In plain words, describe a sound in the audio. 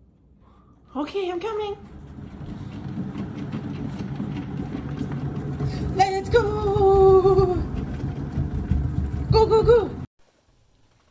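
A cat wheel rumbles and rattles as a cat runs on it.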